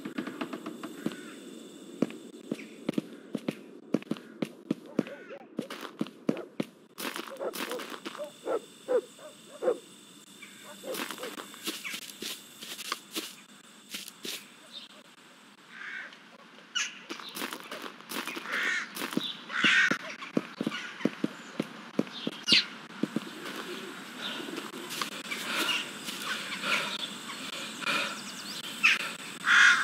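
Footsteps thud steadily on hard ground and dirt.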